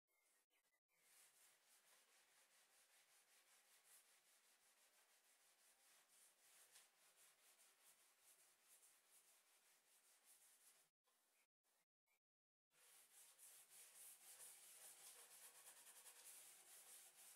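A sanding pad scrubs back and forth along wood with a scratchy hiss.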